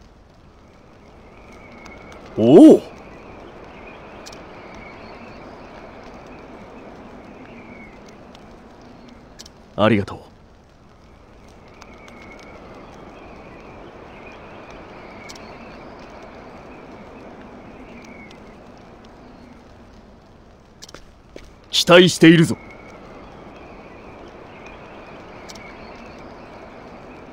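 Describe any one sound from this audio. Torch fires crackle softly.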